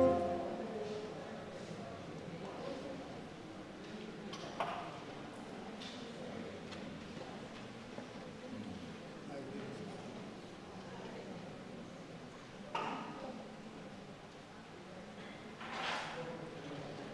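Voices of men and women murmur and talk quietly in an echoing hall.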